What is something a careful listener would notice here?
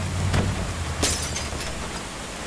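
A car window smashes with a crash of glass.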